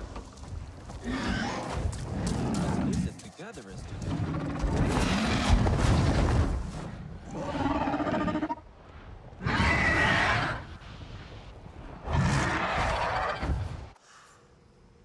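Wind rushes loudly in strong gusts as a large winged creature flies.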